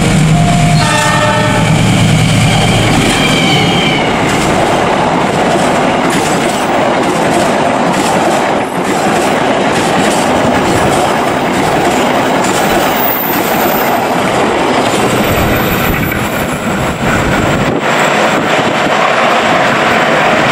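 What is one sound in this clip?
A passing train rumbles and roars loudly close by.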